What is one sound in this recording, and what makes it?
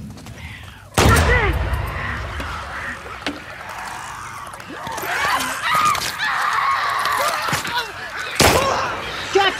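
Gunshots bang loudly with a short echo.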